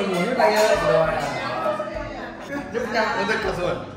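Several women and men laugh.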